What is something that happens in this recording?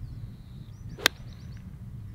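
A golf club strikes a ball with a sharp crack.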